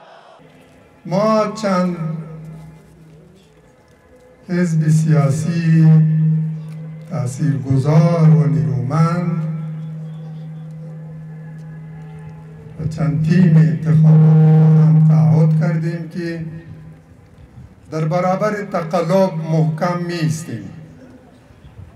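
An elderly man speaks forcefully through a loudspeaker system, his voice echoing outdoors.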